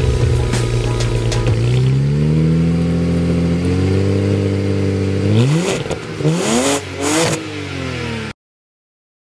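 A car engine idles through the exhaust and revs up and down.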